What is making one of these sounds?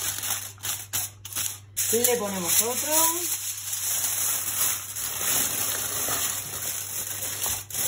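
Aluminium foil crinkles and rustles close by.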